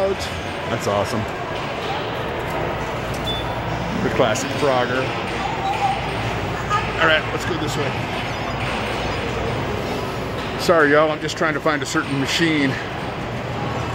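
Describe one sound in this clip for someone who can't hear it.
Arcade machines beep and play electronic music.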